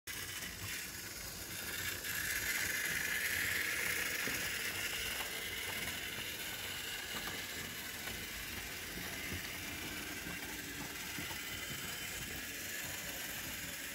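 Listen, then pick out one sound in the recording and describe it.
A model train rumbles and clatters along metal tracks.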